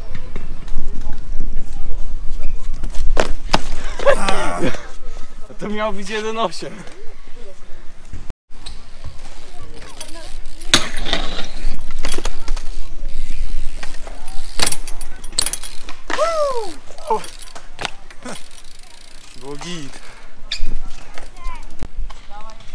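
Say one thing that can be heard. Bicycle tyres roll and scrape on concrete.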